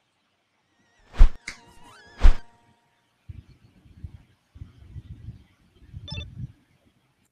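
A video game plays short electronic sound effects.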